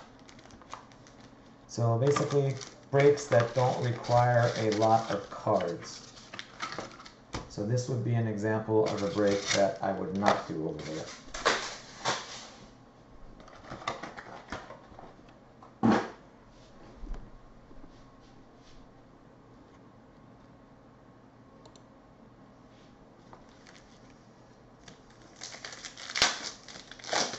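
Foil card packs rustle and crinkle in hands.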